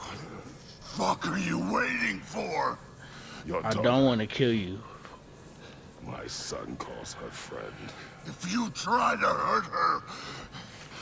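Another man speaks roughly, close by.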